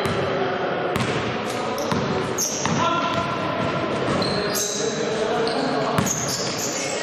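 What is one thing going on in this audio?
A basketball thumps on the floor, echoing in a large hall.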